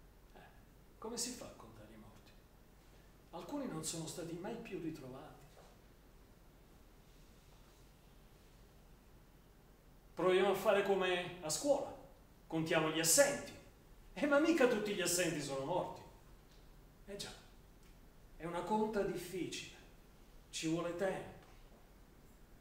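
An elderly man speaks slowly and dramatically, with long pauses.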